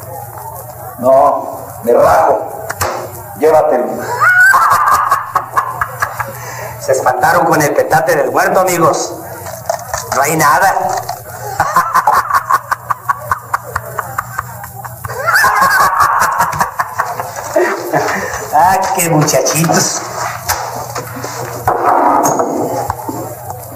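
Men talk calmly nearby.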